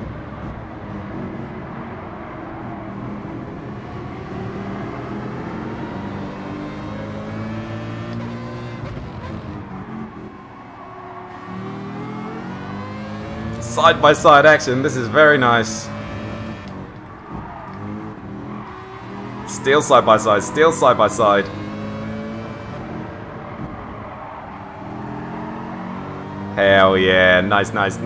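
A racing car engine drones and changes pitch as it accelerates.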